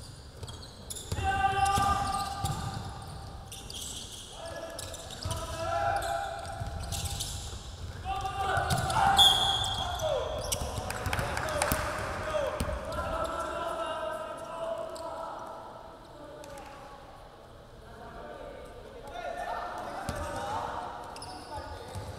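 Young men shout to each other across an echoing gym.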